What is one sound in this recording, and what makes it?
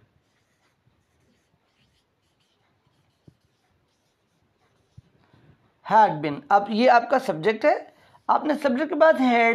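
A man writes with a marker on a whiteboard, squeaking softly.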